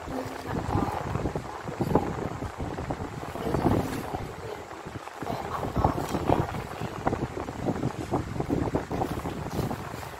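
Paper rustles softly as a hand slides it across a table.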